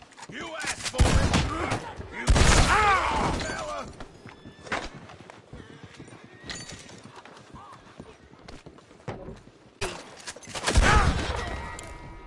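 A gun fires loud, ringing shots.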